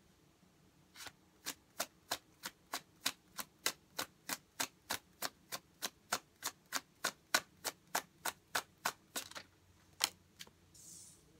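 Paper banknotes are counted one by one with crisp, rapid flicks.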